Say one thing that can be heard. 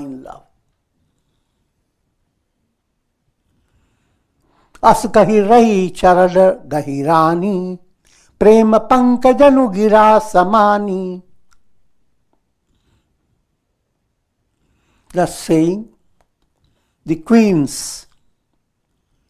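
An elderly man chants verses in a sing-song voice through a close microphone, with pauses between lines.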